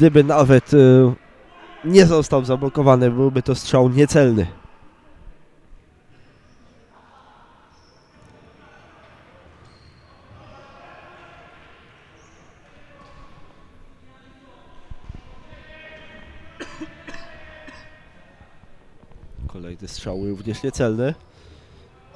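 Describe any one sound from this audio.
Men shout to each other across a large echoing hall.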